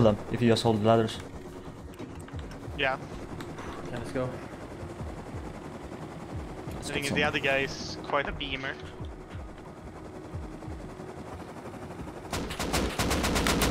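A small helicopter engine drones steadily.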